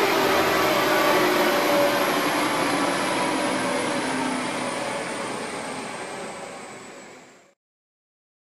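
A car engine roars loudly and slowly winds down, fading away.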